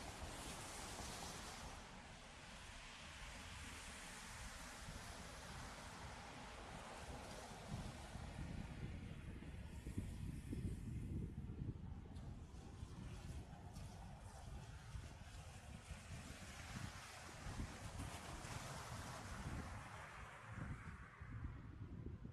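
Wind gusts and buffets the microphone outdoors.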